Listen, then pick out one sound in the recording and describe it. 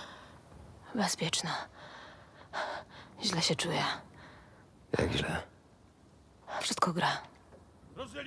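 A young woman speaks tensely and fearfully, close by.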